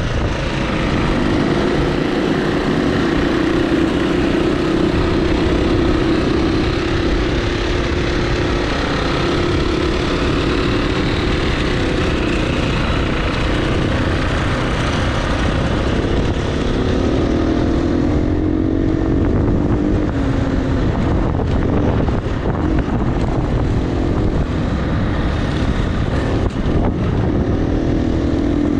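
Tyres crunch over gravel and rocks.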